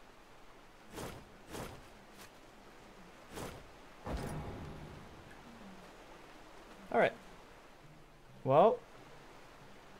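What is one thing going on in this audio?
Game sound effects whoosh and clang during a fight.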